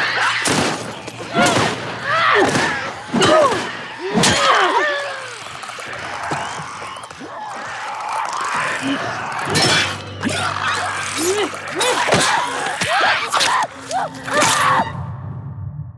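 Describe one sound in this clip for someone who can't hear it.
A wooden club strikes with heavy, sharp thuds.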